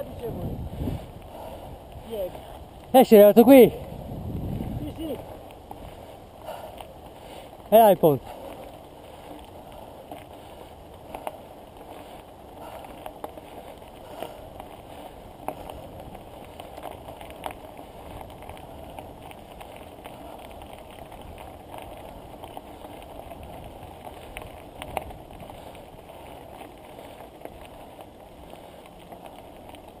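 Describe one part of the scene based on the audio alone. Bicycle tyres crunch steadily over loose gravel.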